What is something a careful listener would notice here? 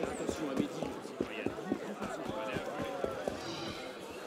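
Footsteps run quickly over cobblestones.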